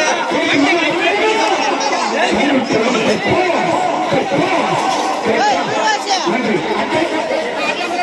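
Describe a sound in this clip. A crowd of men talk and shout loudly all around, close by.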